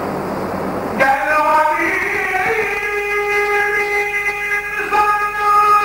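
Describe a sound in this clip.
A man chants in a long, wavering voice through a loudspeaker.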